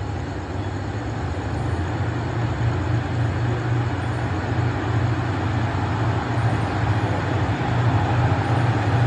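Another diesel train rumbles as it approaches.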